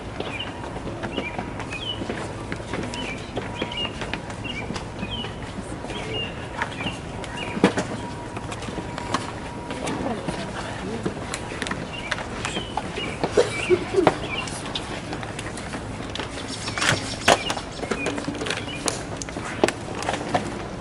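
A guard's hard-soled shoes click in slow, measured steps on stone outdoors.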